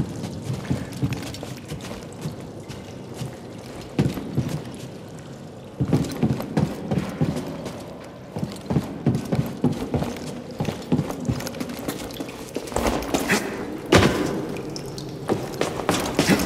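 Footsteps clang on a metal walkway.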